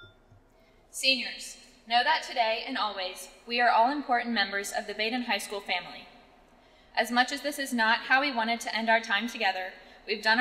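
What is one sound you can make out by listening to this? A young woman speaks calmly into a microphone over a loudspeaker in a large echoing hall.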